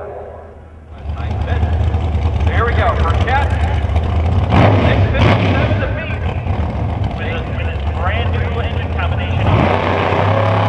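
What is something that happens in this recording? A race car engine rumbles and revs loudly at the start line.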